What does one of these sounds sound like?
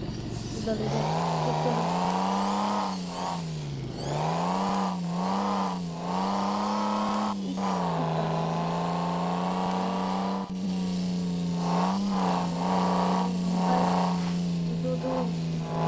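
A car engine hums steadily, revving up and down as the car drives.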